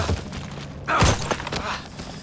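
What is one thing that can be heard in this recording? A body slams hard into rocky ground.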